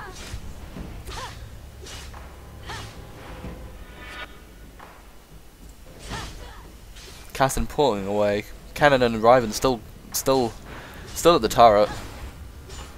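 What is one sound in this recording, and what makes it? Fantasy battle sound effects whoosh and crackle.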